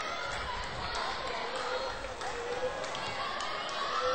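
A volleyball is spiked with a sharp smack.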